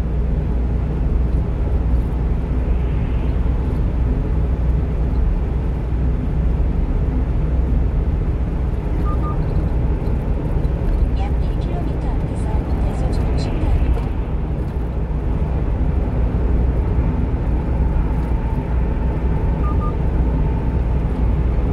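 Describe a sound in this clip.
Tyres roll steadily over a highway at speed.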